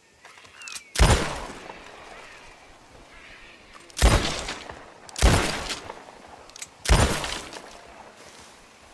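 A revolver fires several loud shots that ring out outdoors.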